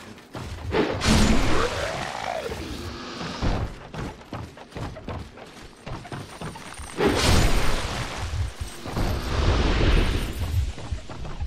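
A sword swings and strikes with a loud crash.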